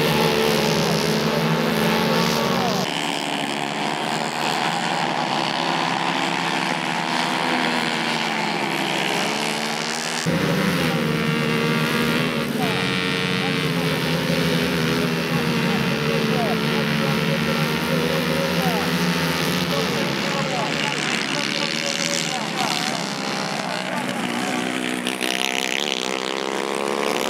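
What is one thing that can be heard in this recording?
Two-stroke racing karts race past at full throttle on a dirt track, their engine pitch rising and falling.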